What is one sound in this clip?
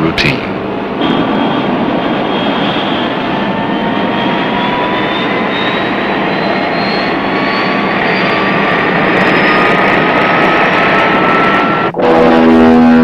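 A jet engine whines and rises steadily in pitch.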